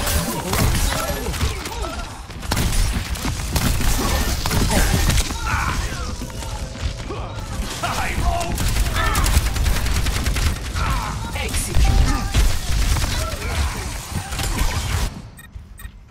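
Explosions boom and thud.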